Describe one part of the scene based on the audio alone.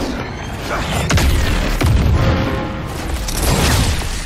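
An explosion bursts with a deep roar.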